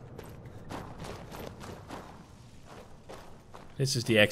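Footsteps crunch on dirt at a steady walking pace.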